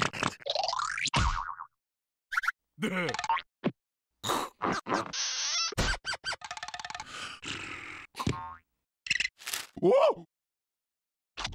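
A cartoon creature gibbers and squeals in a high comic voice.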